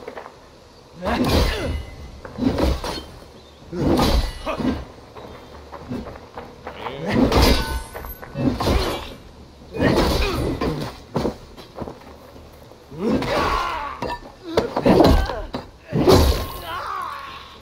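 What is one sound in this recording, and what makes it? Swords clash and strike with sharp, heavy blows.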